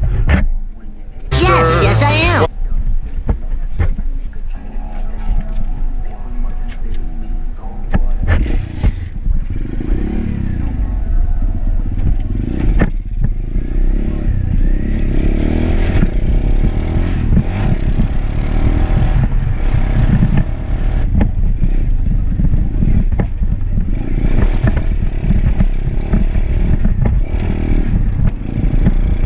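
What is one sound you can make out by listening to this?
A dirt bike engine idles and revs up close.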